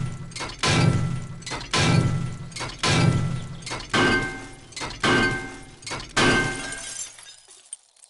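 A heavy wrench repeatedly bangs against a metal door with loud ringing clangs.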